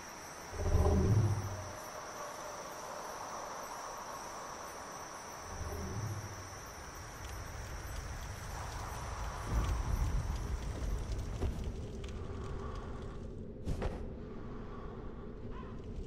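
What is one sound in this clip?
Heavy footsteps clank and thud on stone.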